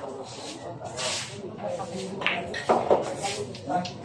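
A cue strikes a pool ball with a sharp click.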